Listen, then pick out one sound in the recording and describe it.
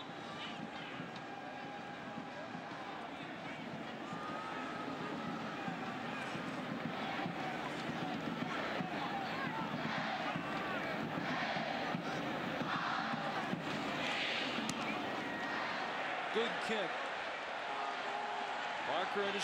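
A large crowd murmurs and cheers outdoors, growing louder.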